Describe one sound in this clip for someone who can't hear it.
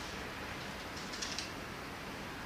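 Metal tool parts click and snap in a person's hands.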